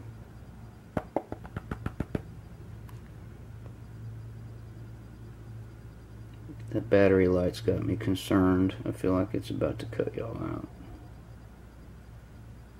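Water sloshes gently in a tub.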